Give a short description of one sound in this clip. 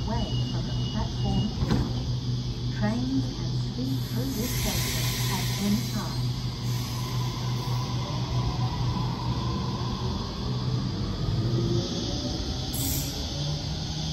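Steel wheels clatter over rail joints.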